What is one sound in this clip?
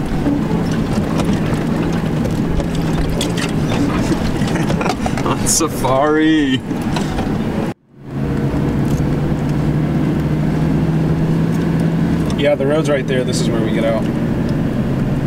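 A car engine hums steadily from inside a moving vehicle.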